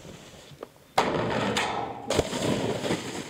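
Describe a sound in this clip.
A snowboard scrapes along a metal pipe.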